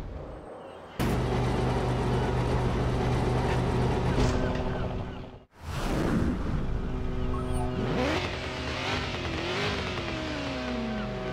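A V8 sports car engine runs with a deep, throbbing note.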